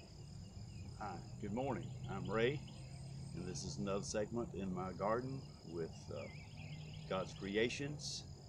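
An elderly man speaks calmly, close by.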